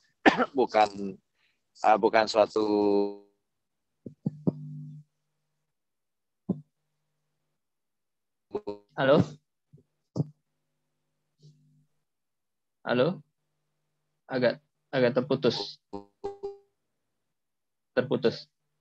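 A man speaks in short bursts with pauses, heard over an online call.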